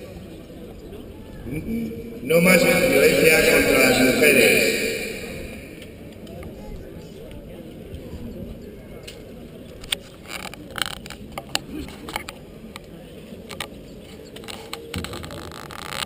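A crowd of men and women murmurs quietly outdoors.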